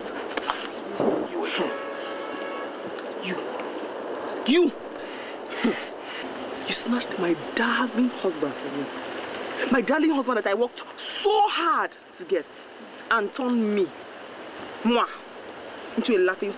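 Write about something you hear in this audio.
A young woman speaks with animation and cries out loudly close by.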